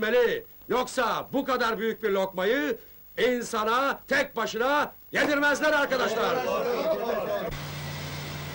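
A man speaks calmly in a room.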